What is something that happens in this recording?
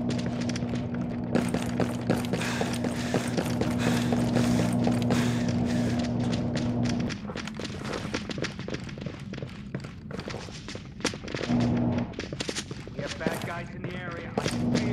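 Boots step on a hard tiled floor.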